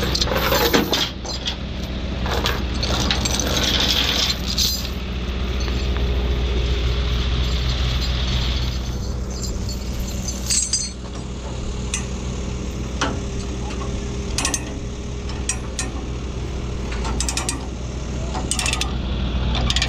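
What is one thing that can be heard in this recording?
Metal chains clank and rattle.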